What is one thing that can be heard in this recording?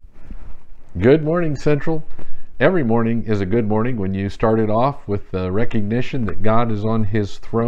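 A middle-aged man speaks calmly and warmly, close to the microphone.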